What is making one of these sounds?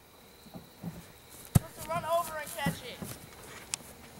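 A ball thumps into someone's hands.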